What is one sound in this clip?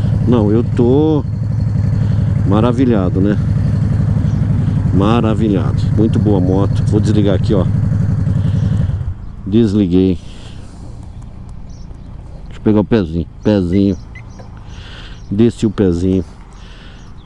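A motorcycle engine revs up sharply and drops back, again and again.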